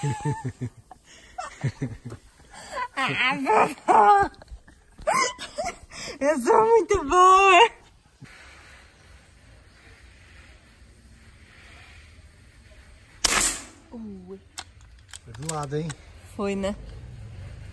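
A girl talks with animation close by.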